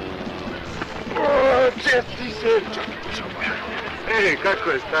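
A young man laughs and shouts loudly nearby.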